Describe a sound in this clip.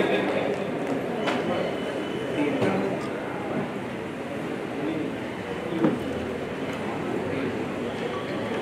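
A man speaks steadily through a loudspeaker in a large echoing hall.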